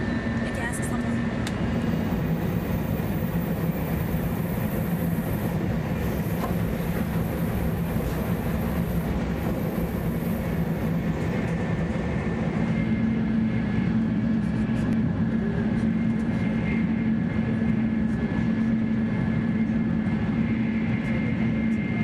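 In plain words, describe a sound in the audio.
A high-speed bullet train rumbles at full speed, heard from inside the carriage.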